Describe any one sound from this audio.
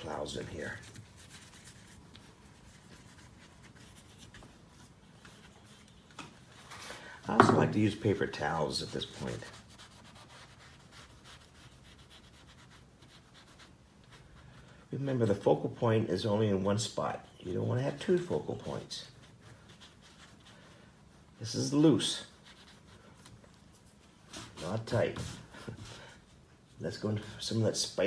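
A paintbrush dabs and scrapes softly on paper.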